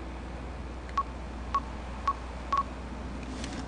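Short electronic beeps chirp from a handheld device.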